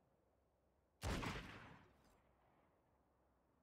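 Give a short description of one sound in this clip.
A revolver fires a single loud shot that echoes and fades.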